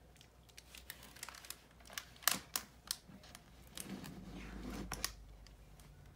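Paper pages rustle and flip as a book is turned.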